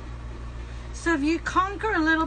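A woman speaks close by in a high, lively voice.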